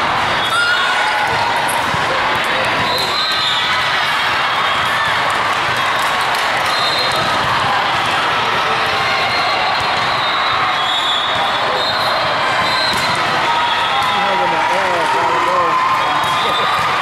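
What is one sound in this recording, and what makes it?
Young women call out to each other on a court.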